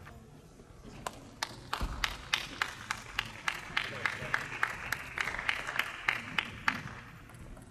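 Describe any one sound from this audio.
A ping-pong ball bounces quickly again and again in a large echoing hall.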